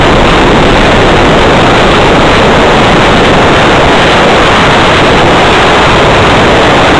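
Wind rushes loudly past a fast-flying drone.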